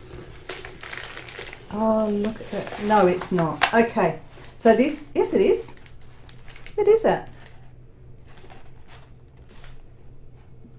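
Plastic sheeting crinkles and rustles under a hand.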